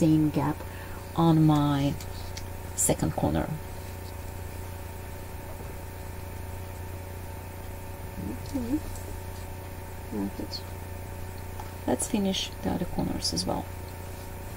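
Fabric and elastic cord rustle softly between fingers.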